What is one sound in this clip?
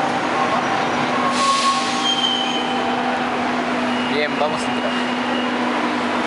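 Train brakes squeal with high, steady tones.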